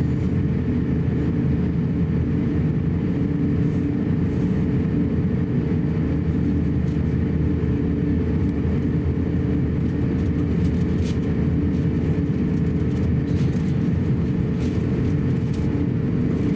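Jet engines hum steadily from inside an airliner cabin as it taxis.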